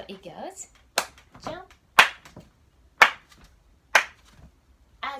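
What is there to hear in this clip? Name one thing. A woman claps her hands sharply in an even beat.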